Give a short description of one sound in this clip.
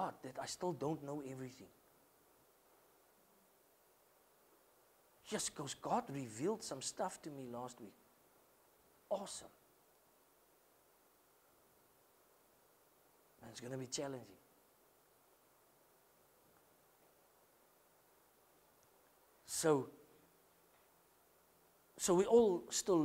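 A middle-aged man speaks calmly in short phrases with long pauses.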